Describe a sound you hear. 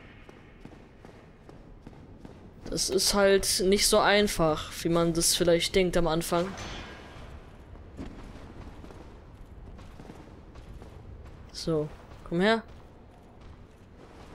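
Armoured footsteps clank on stone steps.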